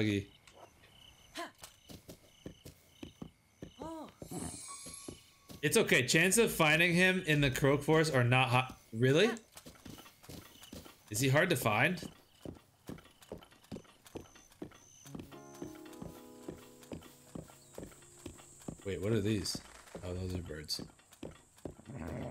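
A horse's hooves thud as it gallops over grass.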